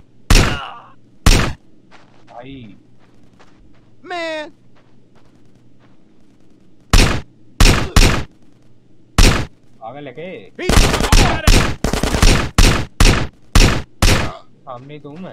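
Gunshots fire loudly in sharp single bursts and rapid volleys.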